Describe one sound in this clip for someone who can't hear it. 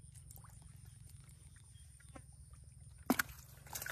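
Fish flop and splash in a bucket of water.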